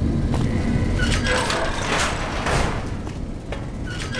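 A heavy metal door slides open with a mechanical hiss and clank.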